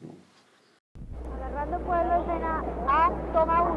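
A man calls out a scene and take number.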